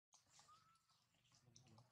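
A baby monkey squeaks in short, high bursts.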